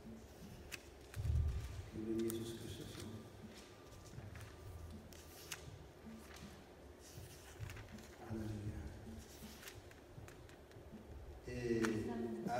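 A man reads aloud calmly in a large echoing hall.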